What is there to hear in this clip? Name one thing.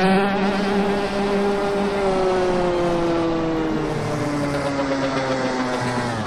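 A motorbike engine drones steadily, its pitch slowly dropping.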